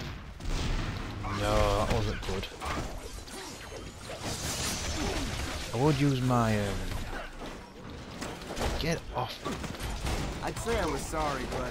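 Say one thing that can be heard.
Punches and kicks thud and smack in a fast game fight.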